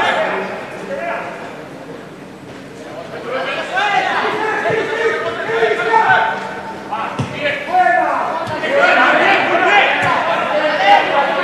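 A football is kicked with a few dull thuds.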